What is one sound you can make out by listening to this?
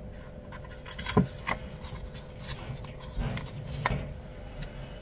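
Paper sheets rustle and crinkle as they are handled.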